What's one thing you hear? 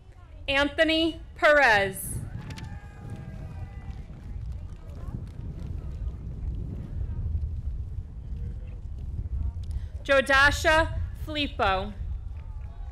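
A woman reads out names over a loudspeaker in a large open space, with an echo.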